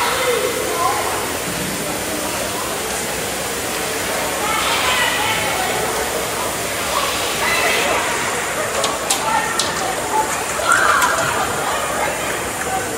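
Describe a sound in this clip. A crowd of young players cheers and chatters in a large echoing rink.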